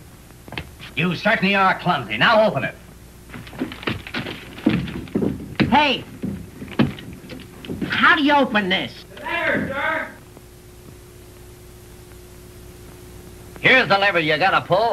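A man speaks with animation.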